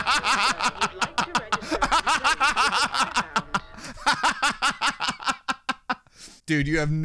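A man laughs loudly and in bursts close to a microphone.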